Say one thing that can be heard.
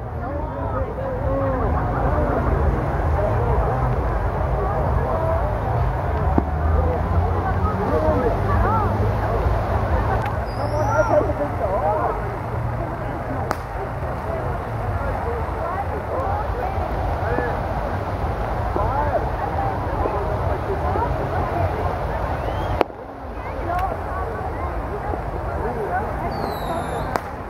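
Fireworks pop and crackle.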